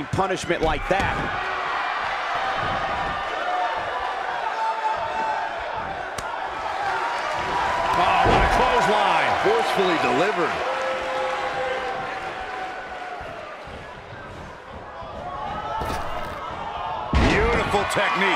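Bodies slam heavily onto a wrestling ring mat with loud thuds.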